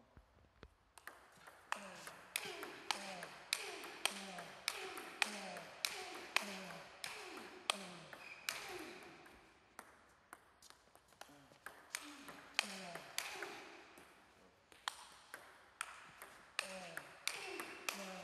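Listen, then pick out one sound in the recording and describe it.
A ping-pong ball clicks rapidly back and forth off paddles and a table.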